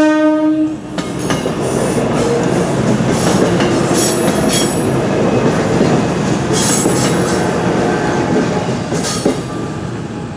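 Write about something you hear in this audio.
An electric multiple-unit commuter train rumbles past over a level crossing.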